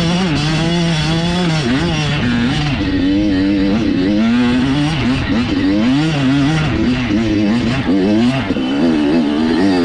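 A dirt bike engine revs loudly, rising and falling as it climbs.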